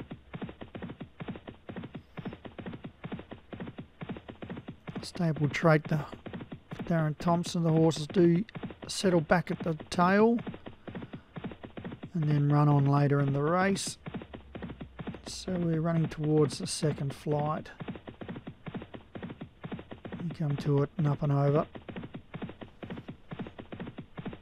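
Horses' hooves pound rapidly on turf as they gallop.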